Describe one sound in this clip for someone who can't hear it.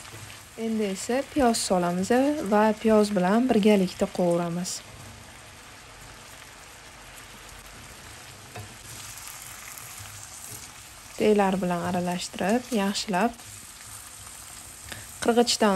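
A spatula scrapes and stirs in a frying pan.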